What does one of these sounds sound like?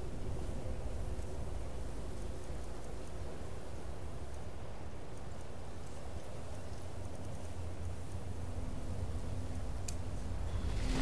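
Soft clicks tick now and then.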